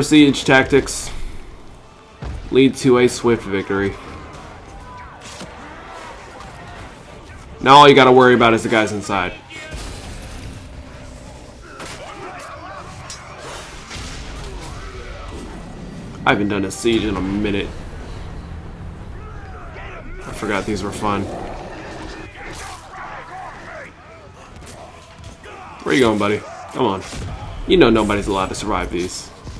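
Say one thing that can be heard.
Weapons clash in a chaotic battle.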